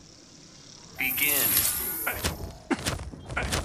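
Sharp electronic game sound effects whoosh and crack.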